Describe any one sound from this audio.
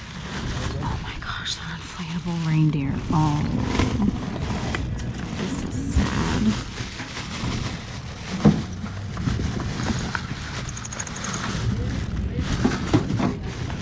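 Plastic bags rustle and crinkle as a hand digs through a box.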